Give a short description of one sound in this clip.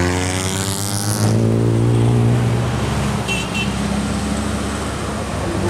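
Car engines hum as cars pass on the road.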